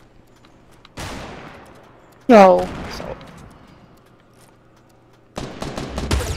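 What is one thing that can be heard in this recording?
A sniper rifle fires with a loud crack.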